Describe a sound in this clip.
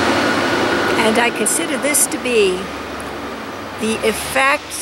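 An elderly woman speaks warmly and close by.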